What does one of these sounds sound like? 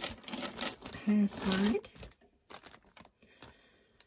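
Plastic beads click softly as they are handled.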